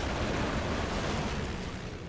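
A propeller plane roars overhead.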